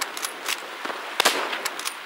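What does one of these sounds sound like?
A rifle bolt clicks and clacks during a reload.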